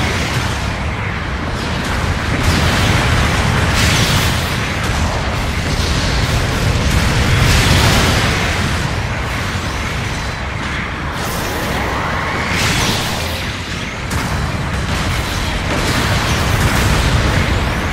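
Heavy mechanical engines roar steadily.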